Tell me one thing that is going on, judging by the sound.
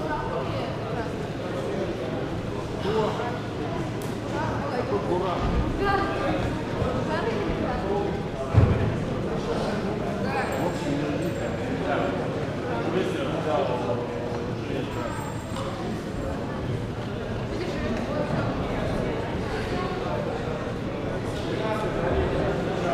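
Several young men and children talk and call out in a large echoing hall.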